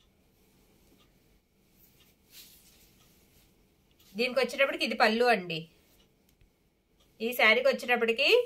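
Fabric rustles softly as hands handle it.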